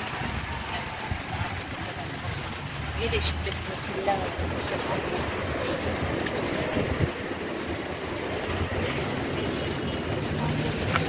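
Traffic hums along a street nearby.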